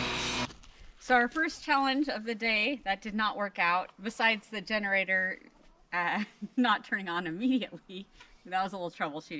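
A woman talks and laughs nearby.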